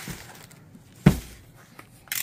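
A cardboard box thumps down on a table.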